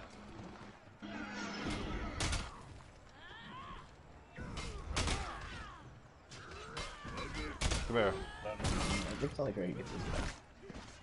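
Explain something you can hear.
Swords clash and clang in a battle.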